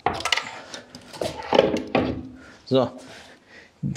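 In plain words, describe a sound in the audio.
A heavy box thumps down onto a concrete floor.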